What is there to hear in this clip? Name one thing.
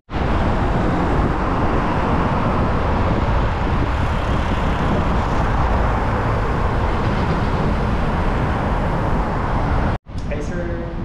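Wind rushes loudly and steadily over a moving bicycle.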